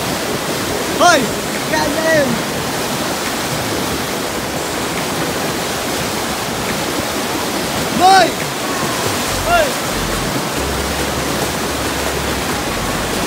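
A fast river rushes and roars over rocks.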